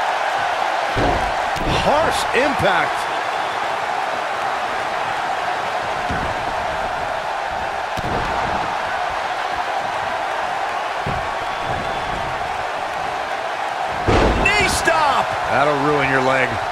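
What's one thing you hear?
Heavy bodies thud onto a wrestling ring mat.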